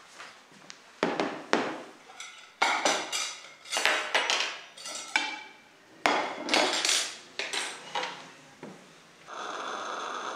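Plates clink as they are set down on a table.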